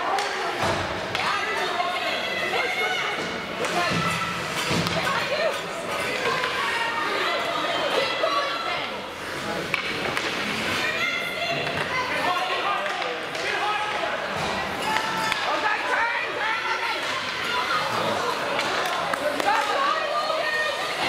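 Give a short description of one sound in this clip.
Spectators shout and cheer from the stands.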